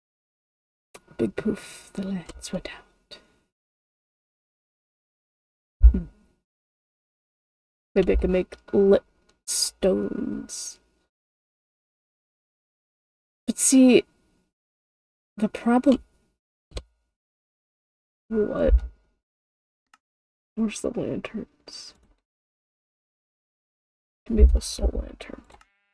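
A young woman talks casually into a close microphone, in short bursts with pauses.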